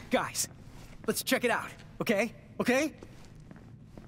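A young man speaks eagerly, close by.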